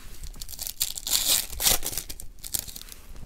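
A foil wrapper crinkles.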